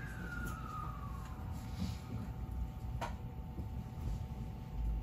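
A train rumbles low and steadily along the tracks, heard from inside a carriage.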